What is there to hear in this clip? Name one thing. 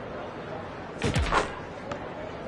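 A basketball drops through a hoop with a short whoosh.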